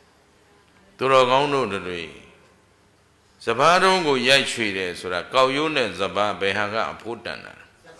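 A middle-aged man speaks in a sing-song, chanting voice through a microphone.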